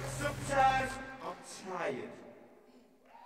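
A man shouts with excitement into a microphone in a large echoing hall.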